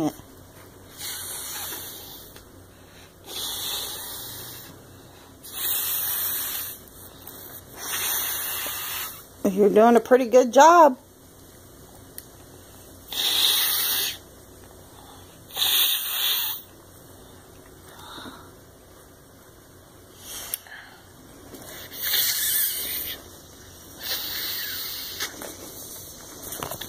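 A young child blows hard into a plastic bag in repeated puffs.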